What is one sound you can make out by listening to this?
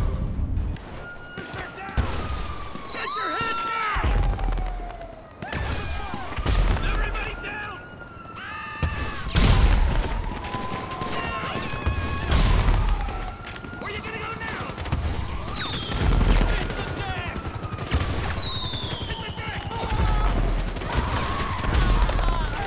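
Fireworks launch with a whoosh and burst with loud crackling bangs.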